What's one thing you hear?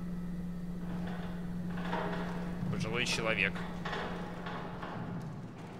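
A gurney's wheels rattle as it rolls along a hard floor.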